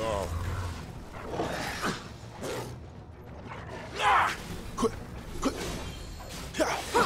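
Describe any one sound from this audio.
Blades clash and strike in quick, sharp hits.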